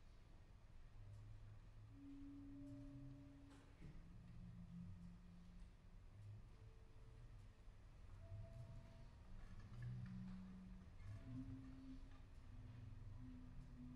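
Soft mallets strike a vibraphone, ringing out low, sustained notes.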